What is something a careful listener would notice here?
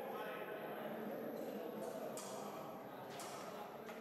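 Fencing blades clash and click.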